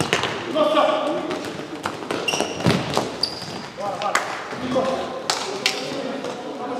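A ball is kicked with sharp thuds in an echoing hall.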